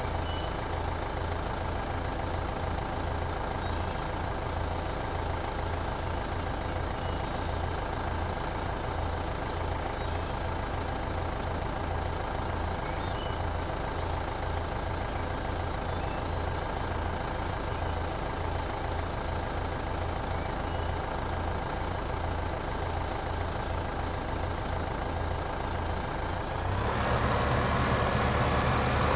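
A tractor engine idles with a steady low rumble.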